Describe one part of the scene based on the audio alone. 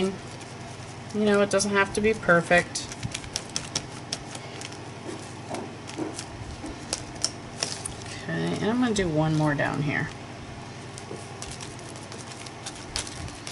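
A sponge dabs softly against paper in quick taps.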